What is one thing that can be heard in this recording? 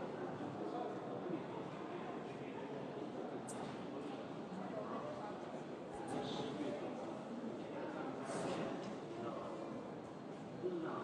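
A crowd of people murmurs and chatters nearby.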